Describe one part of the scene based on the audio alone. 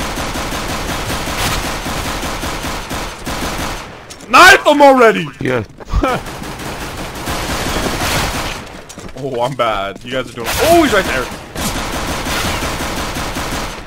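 A pistol fires several sharp shots.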